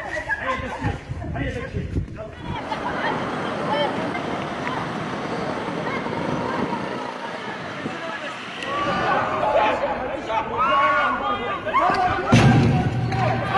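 A crowd of men and women shouts and clamours outdoors.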